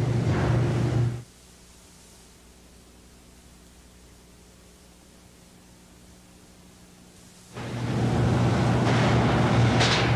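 Large mixing machines hum and rumble loudly.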